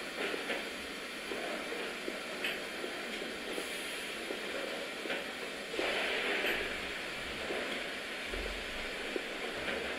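Footsteps echo slowly on a hard floor.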